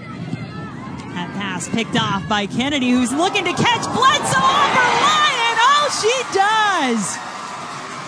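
A large crowd cheers loudly in an open-air stadium.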